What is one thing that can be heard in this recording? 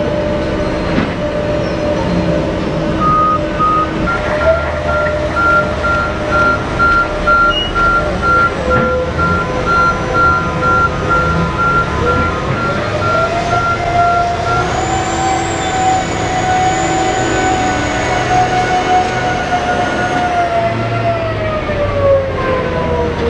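Large tyres crunch over gravel.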